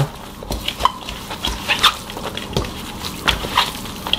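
Gloved hands toss blanched greens in a steel bowl.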